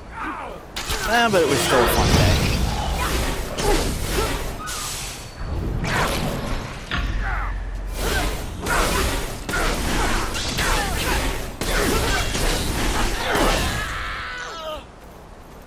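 Spell blasts and impacts burst during a fight.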